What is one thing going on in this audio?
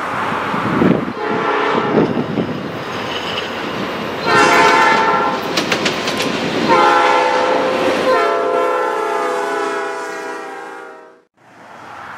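A train horn blows in long, loud blasts.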